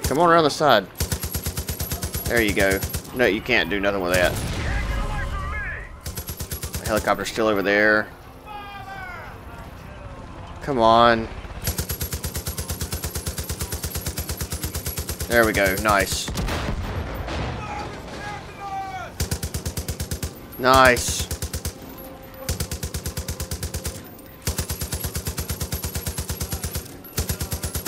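A heavy machine gun fires in long, rapid bursts.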